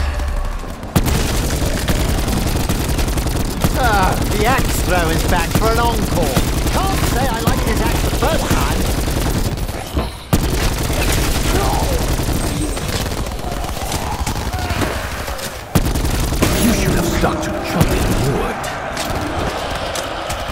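A rapid-fire gun shoots in loud, fast bursts.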